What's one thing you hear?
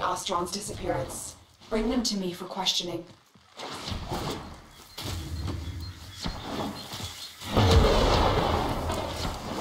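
A body slides along the ground with a rushing whoosh.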